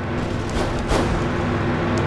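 An explosion bursts on the ground.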